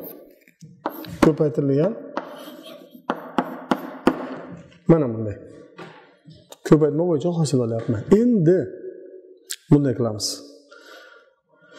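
A middle-aged man speaks calmly and clearly, as if explaining, in a room with some echo.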